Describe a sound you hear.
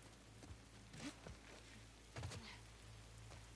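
A body drops heavily onto the ground.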